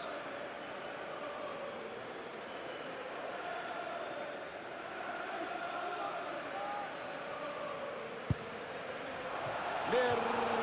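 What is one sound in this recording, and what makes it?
A large stadium crowd chants and murmurs steadily.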